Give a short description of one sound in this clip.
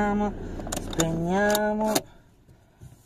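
A young woman sings a few drawn-out notes close by.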